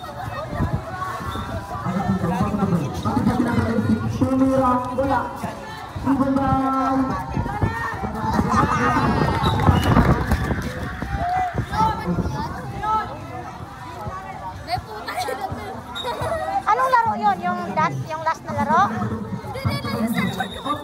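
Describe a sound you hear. Children and young people chatter and shout outdoors close by.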